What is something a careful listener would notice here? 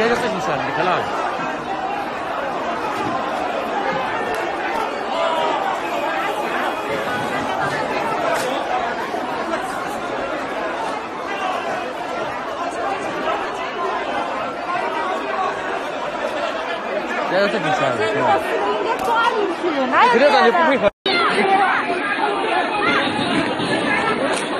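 A large crowd of men and women talks and shouts all at once, close by.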